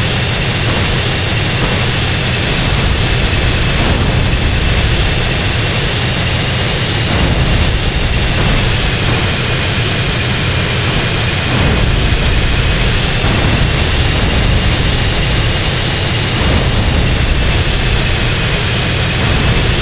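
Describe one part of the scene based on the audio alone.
A jet engine roars steadily with a high whine.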